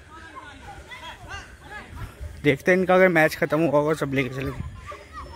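Children shout faintly while playing in the distance outdoors.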